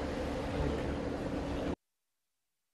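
A car door shuts with a thud.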